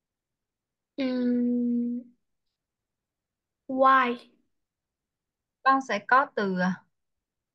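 A young girl speaks briefly and haltingly through an online call.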